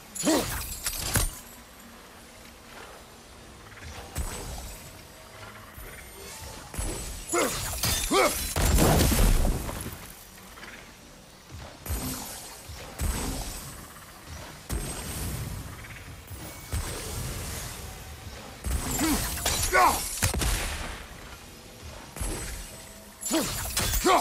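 Magic sigils hum and crackle with a shimmering whoosh.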